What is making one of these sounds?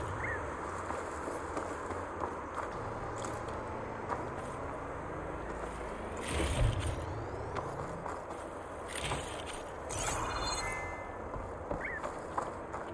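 Light footsteps run quickly over grass, gravel and wooden boards.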